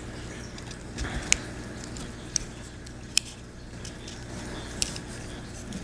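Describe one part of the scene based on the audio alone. Small plastic parts click and snap as fingers handle them.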